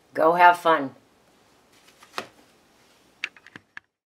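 A stiff card taps down onto a table.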